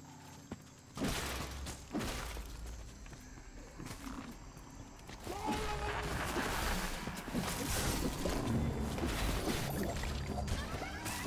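Magic spells crackle and burst loudly in a fight.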